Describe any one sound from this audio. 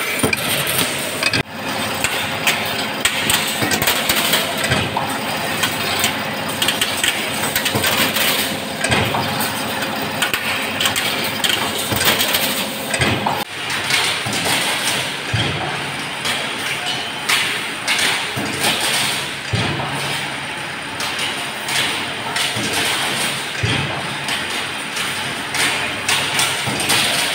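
A machine whirs and clatters steadily nearby.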